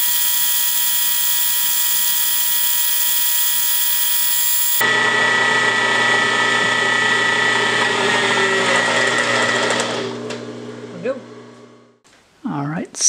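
A drill press motor whines steadily and then winds down.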